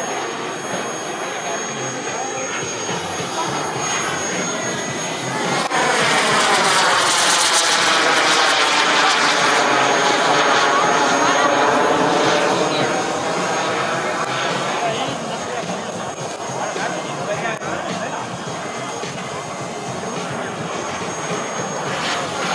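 A jet engine roars steadily overhead, swelling loudly as the jet passes and then fading.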